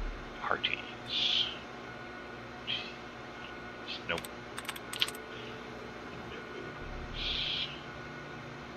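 A computer terminal gives short electronic chirps and clicks.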